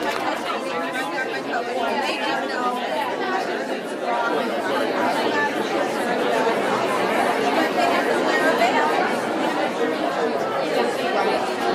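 A crowd of men and women chat and laugh.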